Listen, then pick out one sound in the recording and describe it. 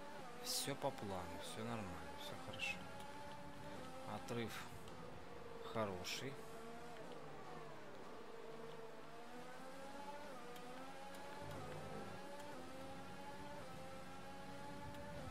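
A racing car engine screams at high revs, rising and falling in pitch as it speeds up and slows for corners.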